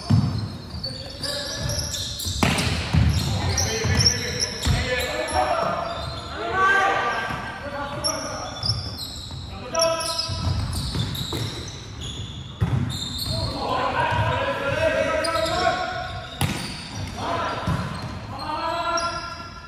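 A volleyball is struck with sharp slaps that echo through a large hall.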